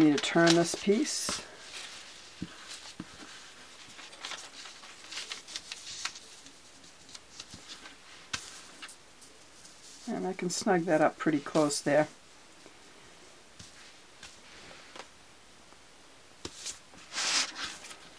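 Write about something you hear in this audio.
Cloth rustles softly as hands move it.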